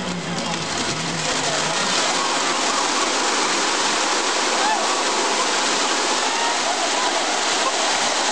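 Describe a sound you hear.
Plastic ducks pour down and splash into water with a steady rushing clatter.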